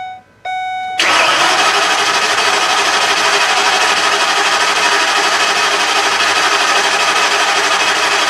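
A car engine starts and idles steadily.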